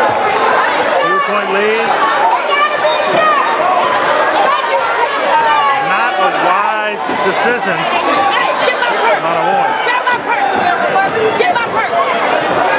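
A crowd of spectators chatters and calls out in a large echoing gym.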